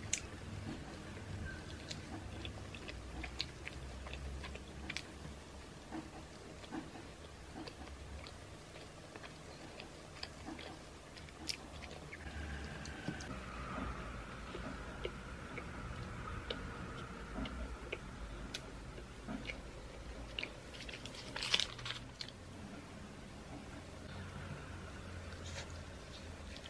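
A young woman chews and eats soft food close to a microphone.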